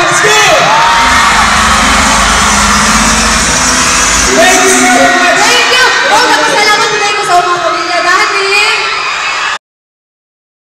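A young woman sings into a microphone over loudspeakers in a large echoing hall.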